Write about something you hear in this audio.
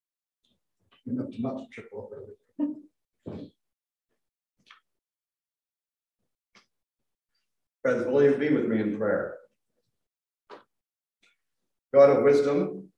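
An older man speaks calmly through a microphone, pausing between phrases.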